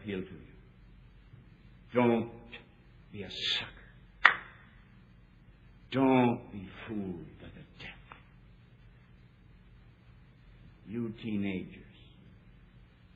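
A middle-aged man speaks slowly, with long pauses, in a thin, old-sounding recording.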